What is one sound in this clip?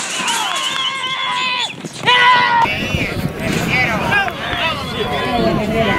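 Horses gallop on a dirt track.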